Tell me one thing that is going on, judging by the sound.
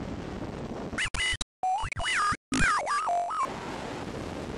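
An electronic alert tone warbles in shifting beeps.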